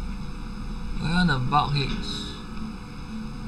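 A young man speaks briefly and casually into a microphone, close by.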